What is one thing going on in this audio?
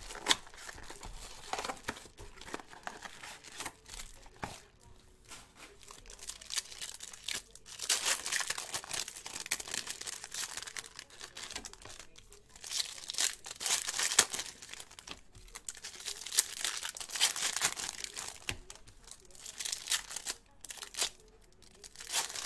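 Cards flick and slap against each other as they are shuffled through.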